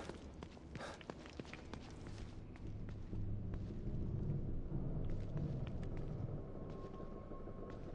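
Footsteps shuffle softly on a hard floor.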